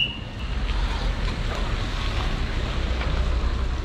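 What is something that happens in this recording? A car engine hums as it drives past slowly.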